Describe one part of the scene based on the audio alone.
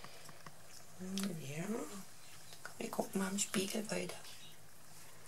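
A woman talks softly and playfully up close.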